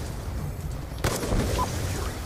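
A sniper rifle fires a single sharp shot.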